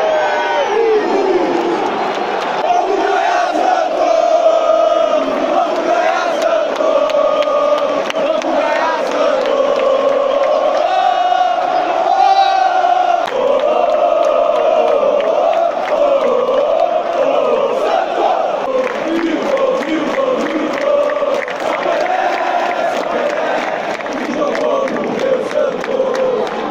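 A large stadium crowd sings a chant in unison, loud and close.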